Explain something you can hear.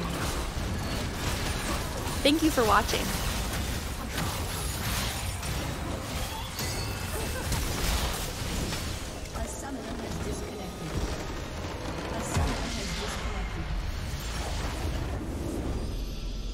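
Video game battle effects crackle, whoosh and boom.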